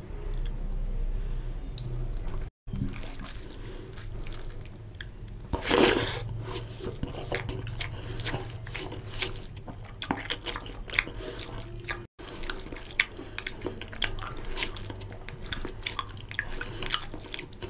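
Fingers squish and mix rice with curry.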